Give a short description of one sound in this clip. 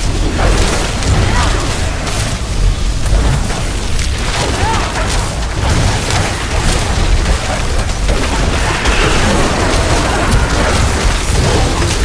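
Magic spells crackle and explode in rapid bursts.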